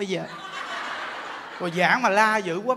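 A crowd of women laughs loudly.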